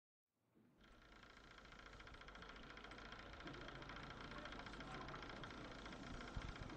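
Clockwork gears tick and whir steadily.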